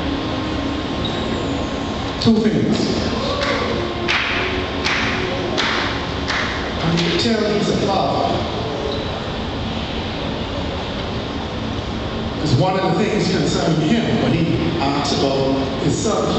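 A crowd of people murmurs and calls out.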